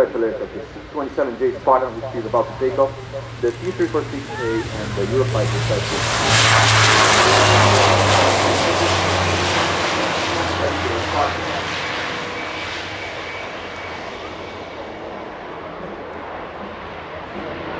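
A propeller plane's engines roar loudly as it takes off and climbs away, then slowly fade.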